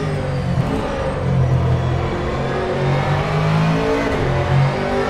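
A racing car engine roars steadily, its pitch shifting as it changes speed.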